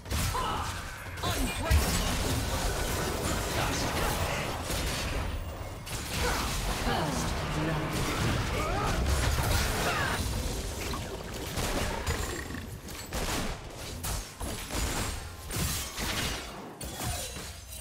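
Game spell effects whoosh and clash during a fight.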